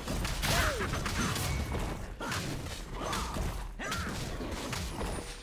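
Quick attack effects thud and swoosh as a fighter strikes a monster in a video game.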